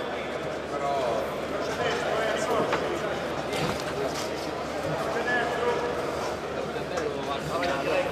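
Boxing gloves thud on a body.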